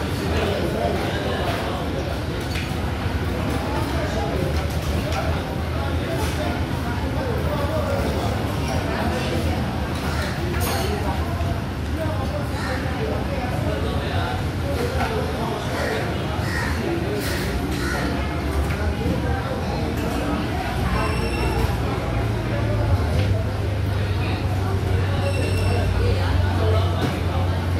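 Many people chatter and murmur throughout a busy, echoing hall.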